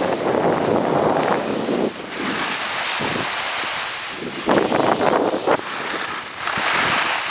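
Skis scrape and hiss across packed snow.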